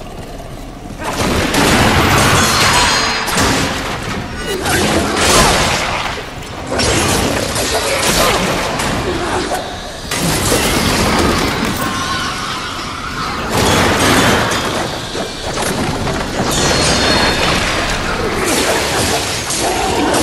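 A blade whooshes and slashes in rapid combat strikes.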